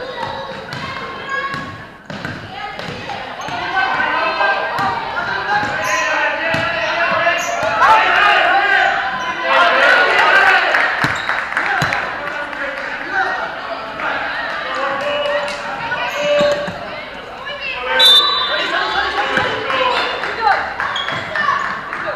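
Young players' voices shout and chatter across a large echoing hall.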